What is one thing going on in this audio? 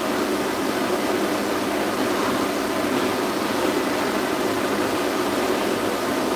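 A pet dryer blows air with a steady loud whoosh.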